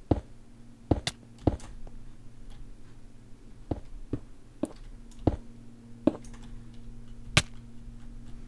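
Blocks are placed with short, soft thuds, one after another at an uneven pace.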